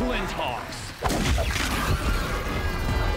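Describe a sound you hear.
A heavy blow crashes with a burst of shattering debris.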